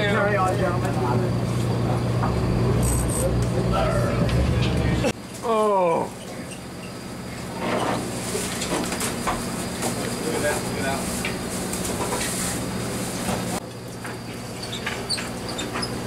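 Men talk and call out nearby outdoors.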